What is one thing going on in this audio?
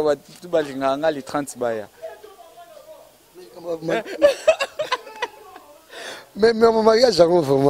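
A young man answers, talking and laughing into a microphone.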